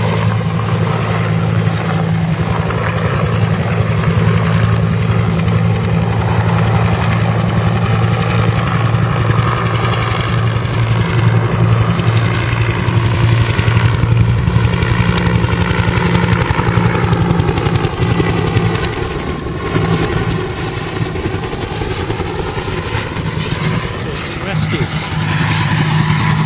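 A helicopter's engine whines, rising and falling in pitch as it passes.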